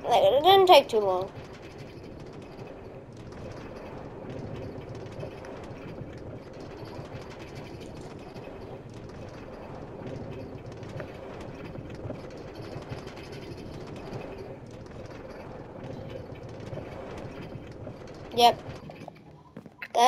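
A cart rolls and rattles steadily along rails.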